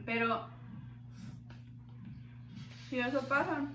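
A young woman chews food with soft mouth sounds.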